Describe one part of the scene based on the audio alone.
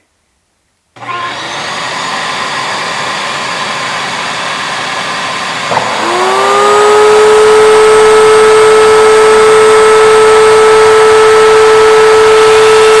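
A dust extractor roars steadily through a hose.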